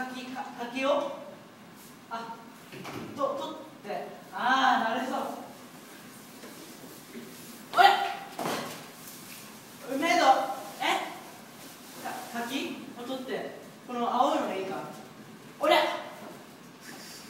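A young woman speaks, close by.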